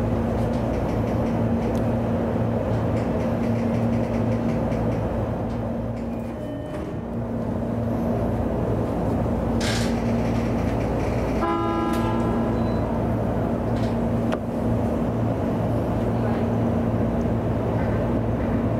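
Train wheels rumble and click over the rails.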